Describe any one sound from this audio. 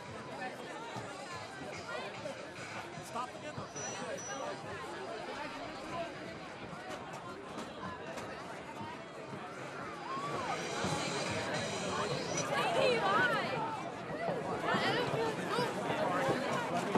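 A large outdoor crowd chatters and cheers from the stands.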